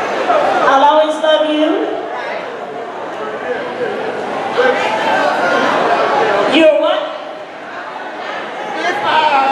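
A band plays behind a singer.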